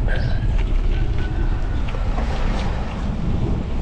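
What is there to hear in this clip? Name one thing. A pickup truck drives past close by with a low engine hum.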